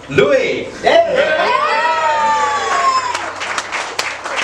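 Young women laugh and cheer excitedly.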